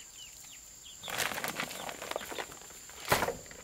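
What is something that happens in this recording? Dry feed rustles and pours from a sack.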